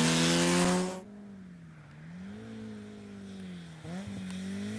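A rally car engine revs in the distance.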